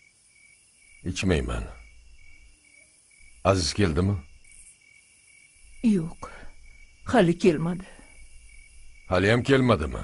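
An older man answers in a low, calm voice.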